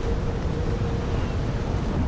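Waves crash against rocks below.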